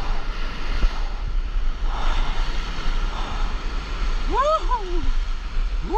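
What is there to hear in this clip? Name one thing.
A wave breaks into whitewater close by.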